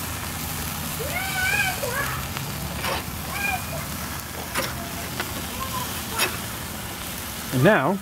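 A metal spatula scrapes against a grill grate.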